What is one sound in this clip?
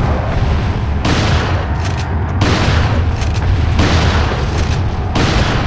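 A gun fires loud shots one after another, echoing in an enclosed space.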